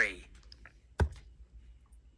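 A bingo dauber stamps onto a paper card with a soft thump.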